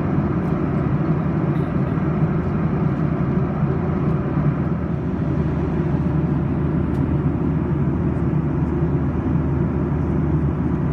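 The turbofan engines of a Boeing 737-800 roar steadily, heard from inside the cabin.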